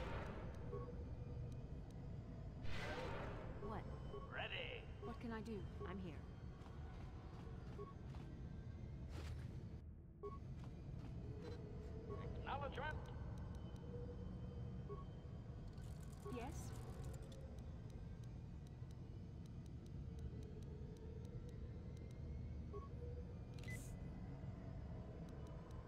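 A lightsaber hums and swishes in a game.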